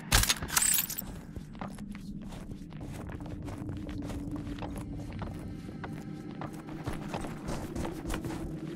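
Footsteps crunch on snow at a steady walking pace.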